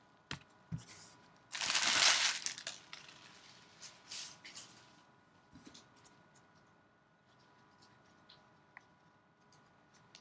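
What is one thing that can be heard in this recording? Trading cards shuffle and tap against each other.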